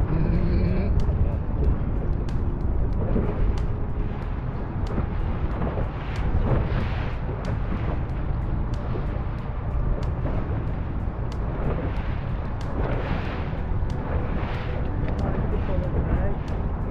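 A boat's hull slaps against small waves with sharp knocks.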